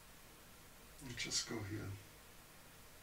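A man murmurs briefly close to a microphone.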